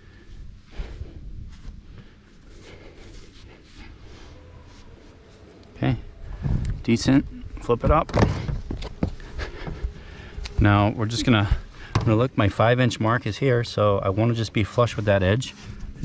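Thin sheet metal crinkles and flexes as it is pressed into place by hand.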